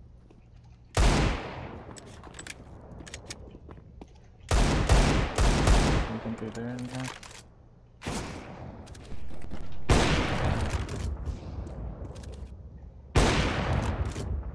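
Gunshots ring out loudly, each with a short echo.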